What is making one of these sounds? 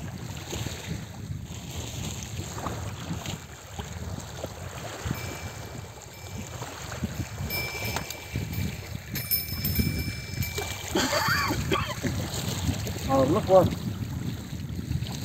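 Small waves lap against a stony shore.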